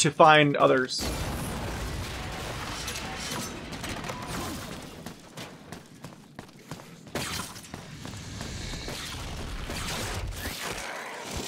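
Explosions rumble on and on.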